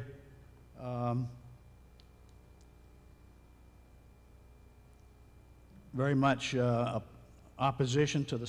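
An elderly man speaks into a microphone with pauses, heard through a loudspeaker in a large room.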